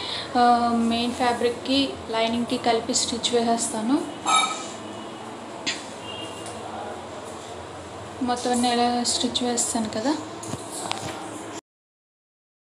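Cloth rustles softly as it is smoothed and folded by hand.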